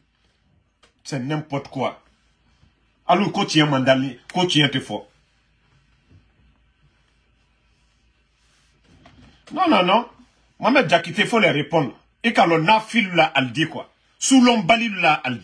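A man speaks calmly and earnestly, close to a microphone, with pauses.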